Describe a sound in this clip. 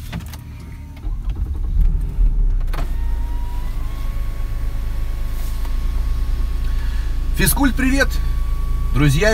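A car engine starts and idles with a low steady hum.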